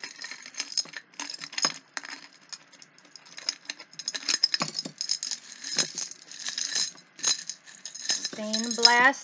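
Glass items clink and rattle lightly close by.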